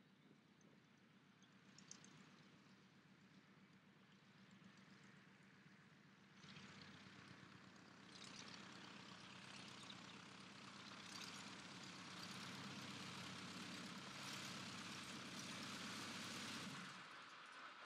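A small propeller plane's engine drones steadily as the plane taxis closer, growing louder and then cutting off.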